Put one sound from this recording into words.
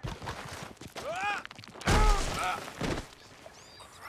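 A man groans and cries out in pain.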